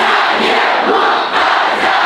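A man speaks loudly through a microphone over loudspeakers.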